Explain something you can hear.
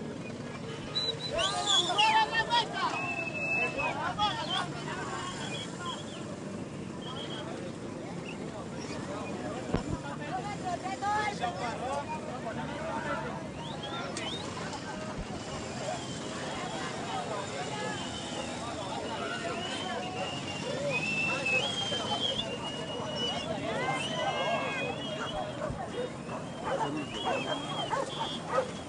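A crowd of people chatters and calls out nearby, outdoors.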